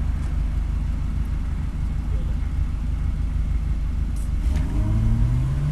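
A car engine idles with a low rumble, heard from inside the car.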